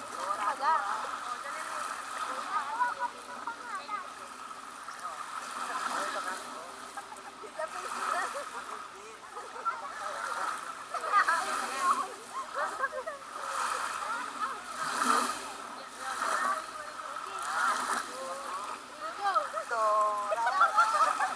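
Small waves lap gently on a pebbly shore.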